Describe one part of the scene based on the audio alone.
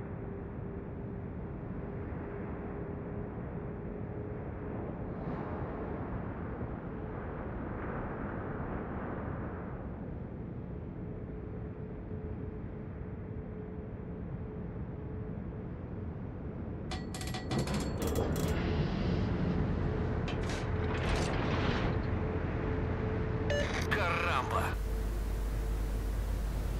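Waves splash against a ship's hull.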